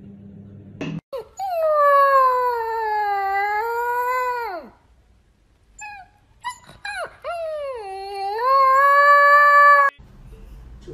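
A puppy howls in long, wavering cries.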